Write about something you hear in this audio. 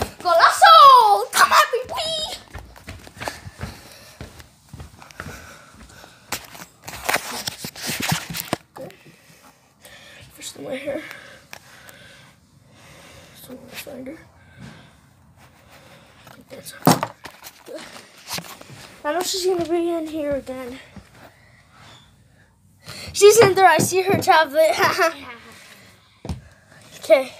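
A young boy talks close to the microphone, in bursts and with animation.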